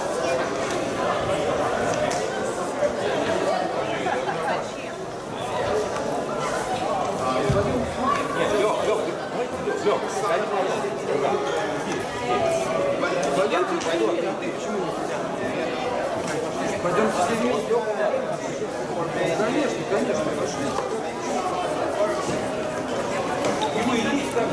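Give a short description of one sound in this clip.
Many voices chatter at once in a large echoing hall.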